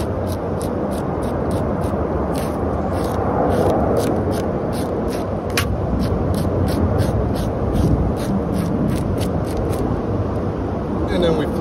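A scaler scrapes scales off a fish in quick, repeated strokes.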